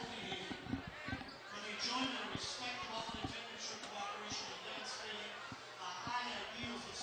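A crowd chatters in a large echoing gym.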